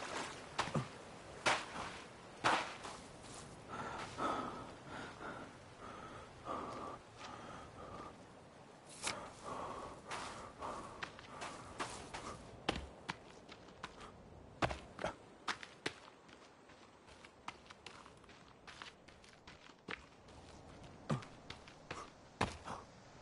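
Footsteps crunch quickly over sand and grass.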